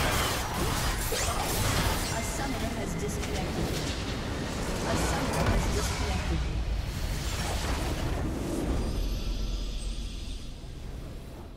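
Spell effects crash and burst in a fierce battle.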